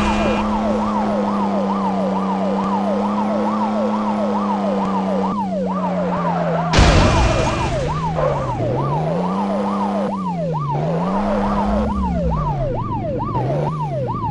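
A siren wails rapidly up and down.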